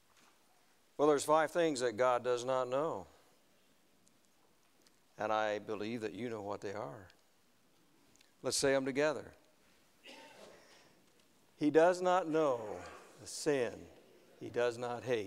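An elderly man preaches with emphasis into a microphone.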